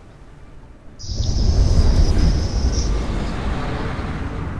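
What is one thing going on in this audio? Flying pods roar and rumble as they rush through the air.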